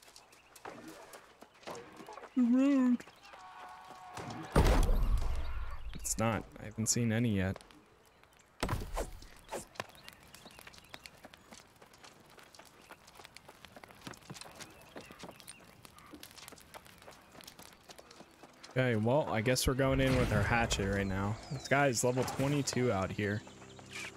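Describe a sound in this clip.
Footsteps patter steadily on a dirt path.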